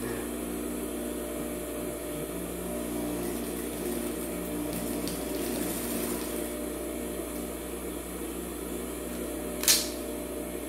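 A sewing machine hums and whirs as it stitches.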